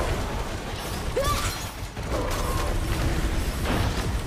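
Weapon shots fire in quick bursts.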